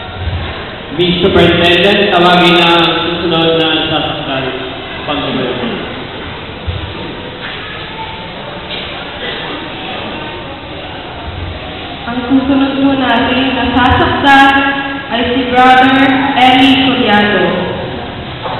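A young woman sings into a microphone through loudspeakers in an echoing hall.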